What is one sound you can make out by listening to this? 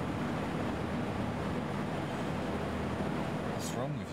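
A man drinks from a glass bottle.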